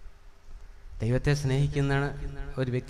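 An elderly man speaks with feeling into a microphone, heard through loudspeakers in a large echoing hall.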